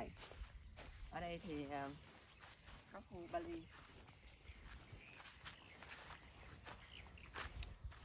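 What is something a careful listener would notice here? Footsteps crunch softly on dry grass.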